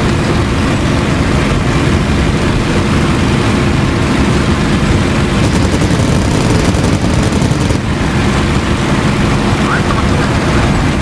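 A propeller aircraft engine drones loudly and steadily.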